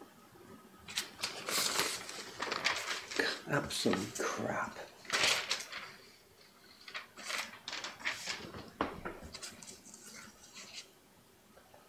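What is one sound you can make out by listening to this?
Paper rustles and crinkles as sheets are handled.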